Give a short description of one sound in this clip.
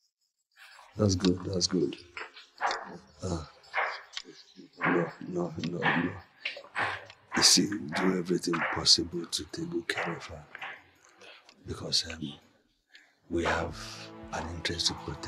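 A younger man replies calmly nearby.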